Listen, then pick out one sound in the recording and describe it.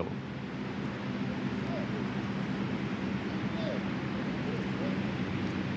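A young man groans in pain on the ground.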